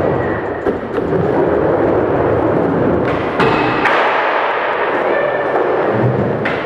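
A skateboard clacks as it lands on the ground.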